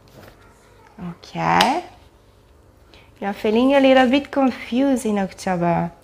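A woman speaks calmly and softly close by.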